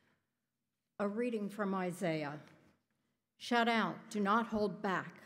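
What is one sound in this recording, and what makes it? A middle-aged woman reads out calmly into a microphone in a large echoing room.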